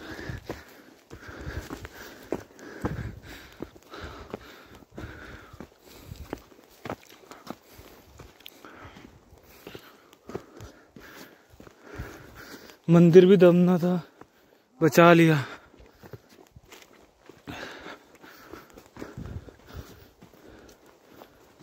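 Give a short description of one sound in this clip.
Footsteps crunch on a dry dirt path.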